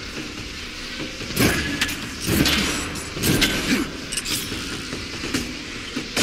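Energy beams blast and crackle in bursts.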